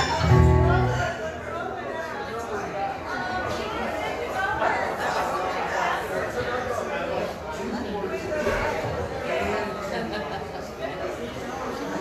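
An elderly man sings into a microphone over a loudspeaker.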